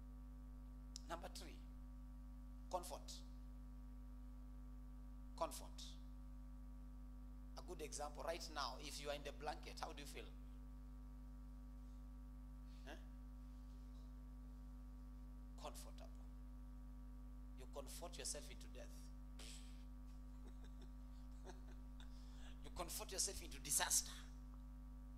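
A man speaks through a microphone in short bursts, with long pauses.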